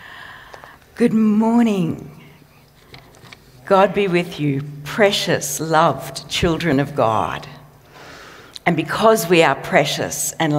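A middle-aged woman speaks warmly into a microphone.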